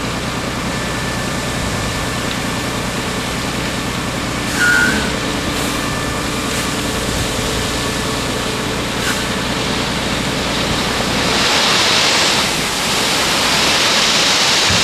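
A truck engine idles steadily with a low rumble.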